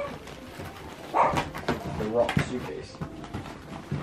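A suitcase lid thumps shut.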